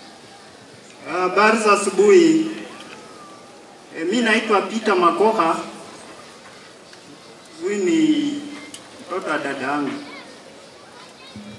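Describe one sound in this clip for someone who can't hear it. A middle-aged man speaks loudly into a microphone, with pauses.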